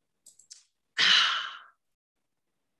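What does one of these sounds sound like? A middle-aged woman laughs briefly over an online call.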